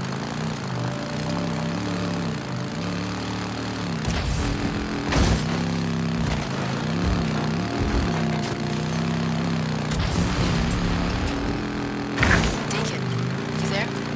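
A motorcycle engine rumbles steadily, its pitch rising and falling with the throttle.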